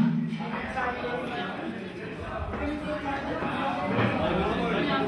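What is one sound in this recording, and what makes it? A crowd of men and women chatter at tables in an echoing hall.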